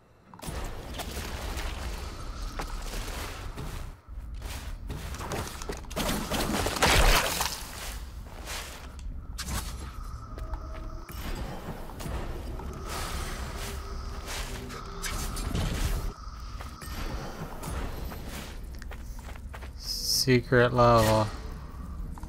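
Blades slash and magic bursts crackle in a fight.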